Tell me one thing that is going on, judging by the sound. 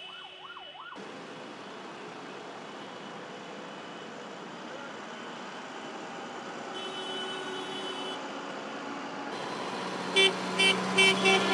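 Tractor engines rumble and idle nearby.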